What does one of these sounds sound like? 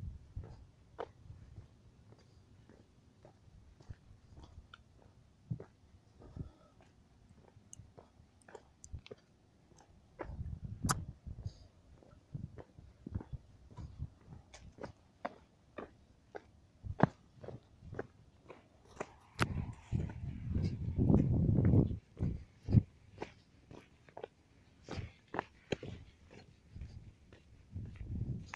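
Footsteps crunch steadily on a dry dirt path.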